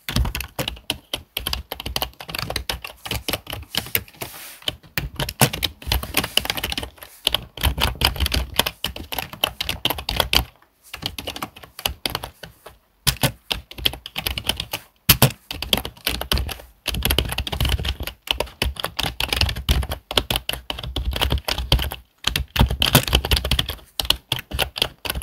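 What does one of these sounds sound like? Fingers type rapidly on a keyboard, the keys clicking and clattering.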